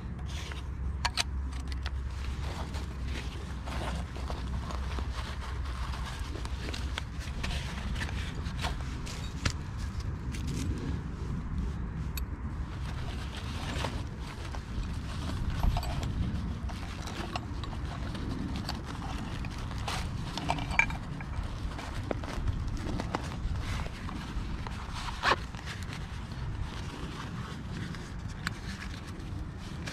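Small objects click and rustle as hands handle gear.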